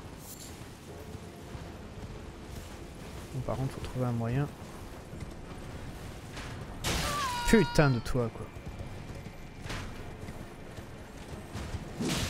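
Footsteps run over dirt and stone.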